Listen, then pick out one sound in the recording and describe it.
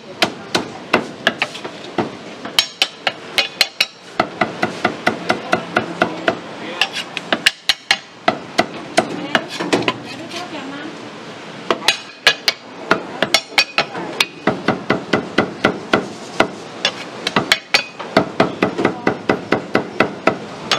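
A cleaver chops rapidly on a wooden board.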